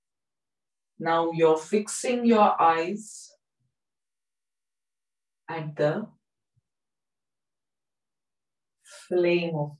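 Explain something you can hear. A young woman speaks calmly into a close microphone, with pauses between phrases.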